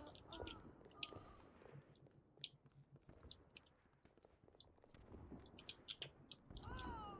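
Game gunfire crackles in short bursts.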